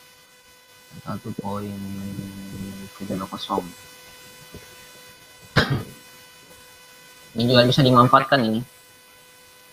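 A young man speaks casually into a microphone over an online call.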